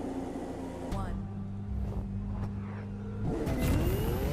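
A racing car engine idles with a low rumble.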